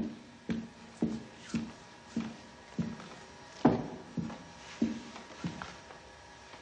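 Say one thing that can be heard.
Footsteps tap slowly across a hard floor.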